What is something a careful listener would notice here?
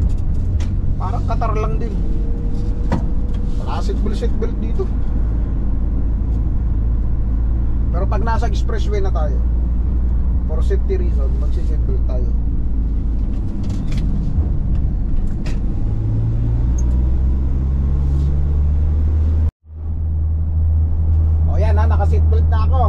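A man speaks calmly nearby, in short bursts.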